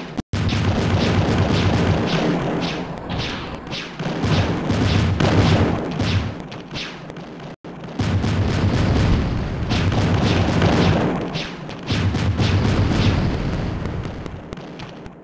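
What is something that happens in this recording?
Explosions boom again and again.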